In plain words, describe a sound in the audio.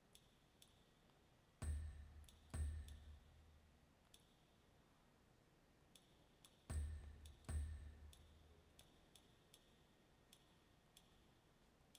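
Short menu clicks tick at an uneven pace.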